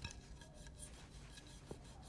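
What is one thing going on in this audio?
A plate clinks against a counter.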